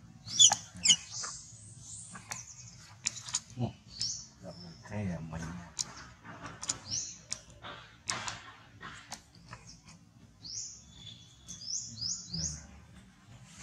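A baby monkey squeals in short, high cries.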